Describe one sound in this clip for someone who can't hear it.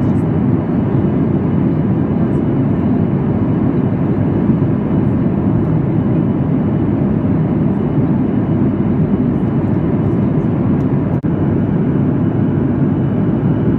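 Jet engines roar steadily from inside an airliner cabin in flight.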